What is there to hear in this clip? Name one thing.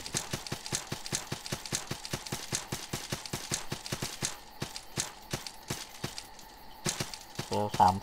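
Footsteps tread quickly and evenly on the ground.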